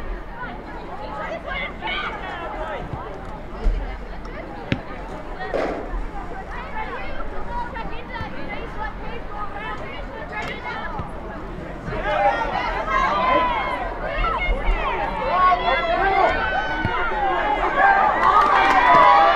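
Players call out to each other across an open field.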